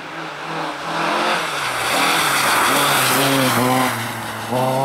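Tyres hiss and spray over slushy snow as a car passes close by.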